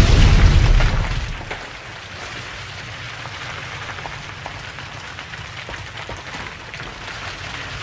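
Stone cracks and crumbles.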